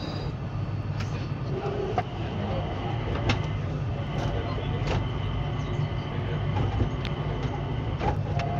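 Train wheels click now and then on the track.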